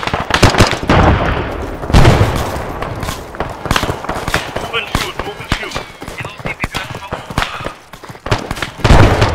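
Explosions boom with deep rumbles.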